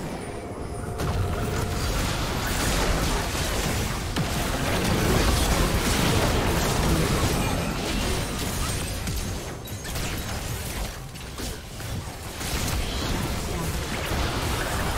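Magic spells burst and weapons clash in a busy fantasy battle.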